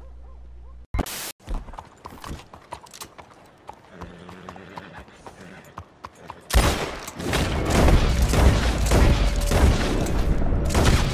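Horse hooves clop on cobblestones.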